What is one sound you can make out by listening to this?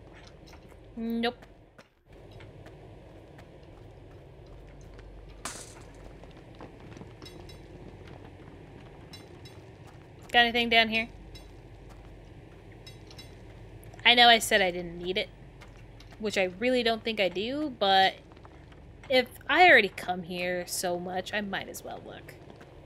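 A young woman talks with animation into a close microphone, with pauses.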